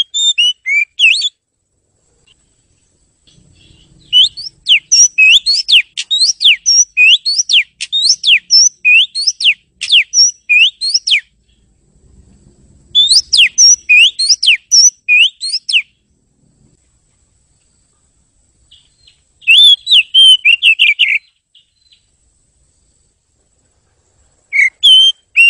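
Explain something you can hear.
A songbird sings loud, rapid whistling phrases close by, in bursts with pauses between.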